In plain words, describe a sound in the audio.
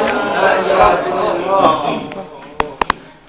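A young man speaks softly close by.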